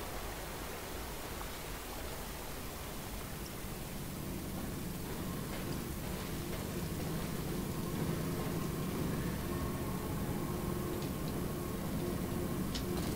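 A man talks quietly into a microphone.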